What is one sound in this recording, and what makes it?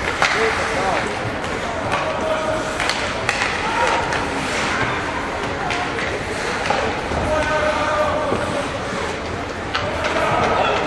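Hockey sticks clack against a puck and each other.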